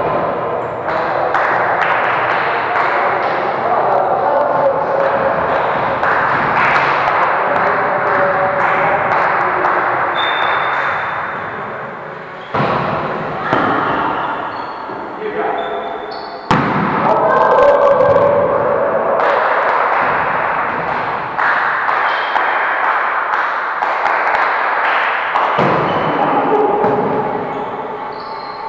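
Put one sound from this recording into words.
Sneakers squeak and thud on a hall floor.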